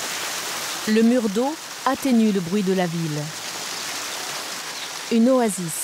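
Water trickles and splashes down a wall outdoors.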